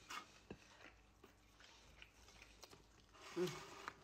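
A woman chews food noisily.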